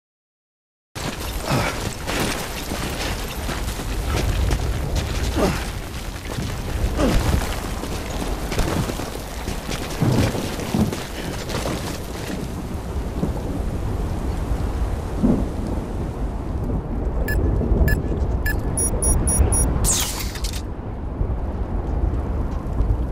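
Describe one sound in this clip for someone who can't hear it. Boots crunch over rocky ground with heavy footsteps.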